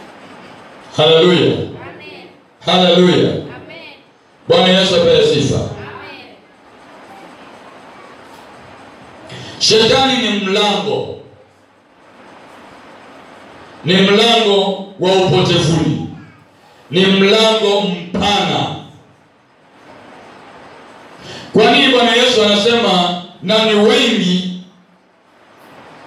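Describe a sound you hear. A man speaks calmly into a nearby microphone, in short phrases with pauses.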